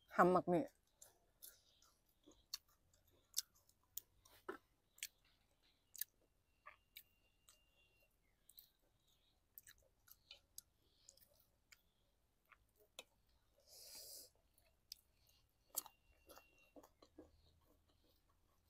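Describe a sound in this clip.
A young woman chews food with soft, wet crunches close to a microphone.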